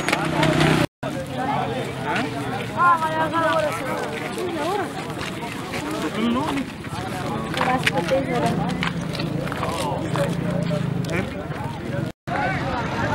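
A crowd of men talk outdoors.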